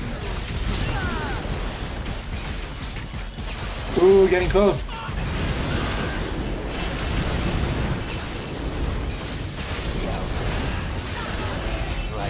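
Fire roars and crackles in bursts.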